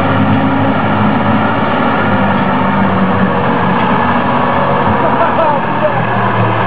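A heavy truck engine roars and strains loudly outdoors.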